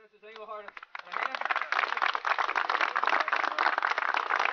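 A group of people applaud outdoors.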